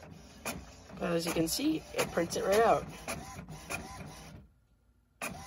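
A printer's motor whirs and squeals as a sheet of paper feeds out.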